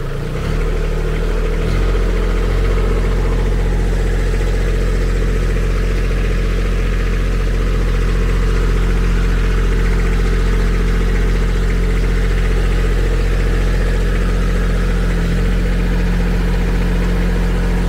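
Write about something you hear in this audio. A small tractor's diesel engine idles steadily close by.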